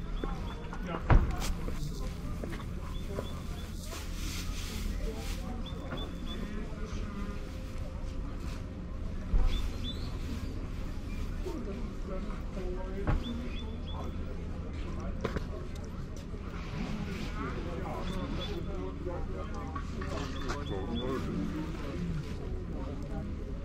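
Men and women talk quietly nearby outdoors.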